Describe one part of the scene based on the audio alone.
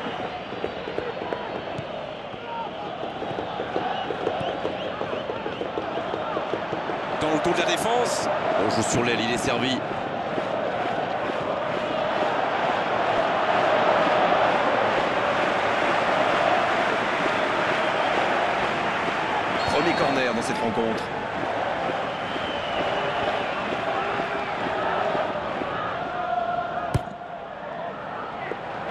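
A stadium crowd roars and chants steadily throughout.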